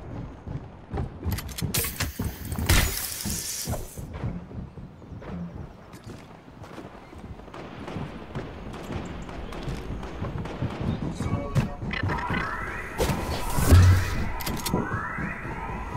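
Footsteps thud quickly on wooden stairs and floorboards.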